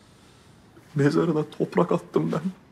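An elderly man speaks in a low, heavy voice close by.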